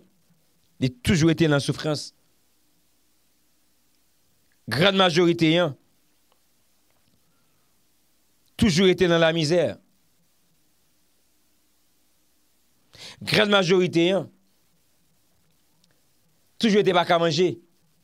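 A man speaks into a microphone up close, calmly, in short phrases with pauses.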